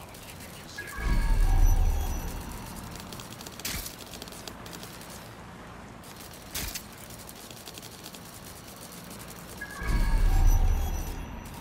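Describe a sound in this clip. A small robot scuttles along with light mechanical clicking.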